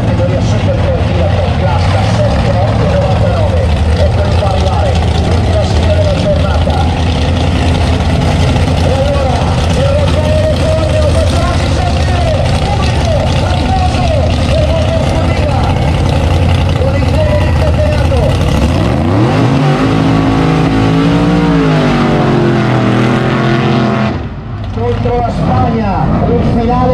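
A car engine roars loudly at high revs.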